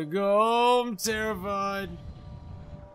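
A man speaks loudly and with animation, close to a microphone.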